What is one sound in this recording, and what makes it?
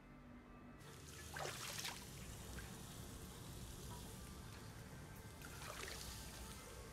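A woman splashes water on her face.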